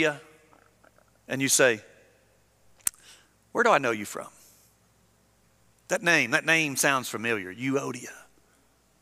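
A man speaks with emphasis through a microphone, in short bursts with pauses.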